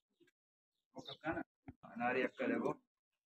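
A man speaks nearby in a calm voice.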